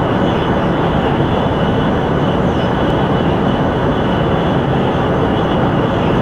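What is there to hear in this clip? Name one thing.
A high-speed train roars steadily along the tracks.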